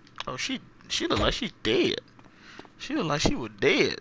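A bat strikes a body with heavy thuds.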